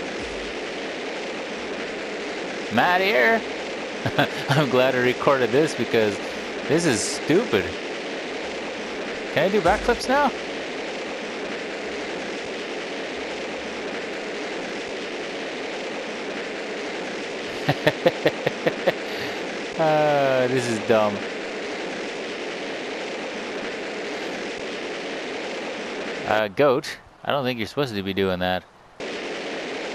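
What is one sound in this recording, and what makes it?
Rocket engines roar steadily.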